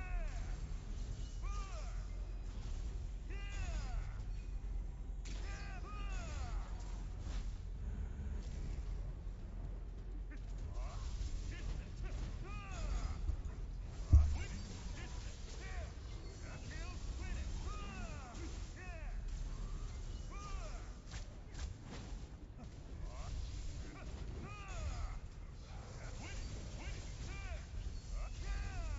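Magic blasts burst with loud bangs.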